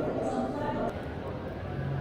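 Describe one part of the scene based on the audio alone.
Footsteps tap on a hard floor nearby.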